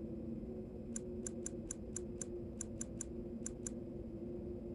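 Short interface clicks tick in quick succession as a menu scrolls.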